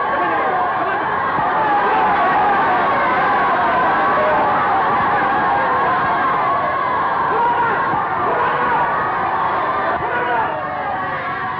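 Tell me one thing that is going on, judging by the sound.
A crowd of children shouts and clamours excitedly.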